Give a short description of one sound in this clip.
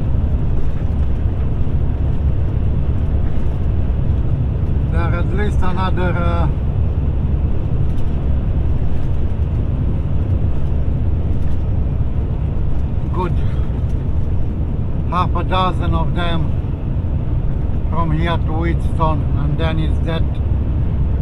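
A car's engine and tyres rumble steadily on an asphalt road.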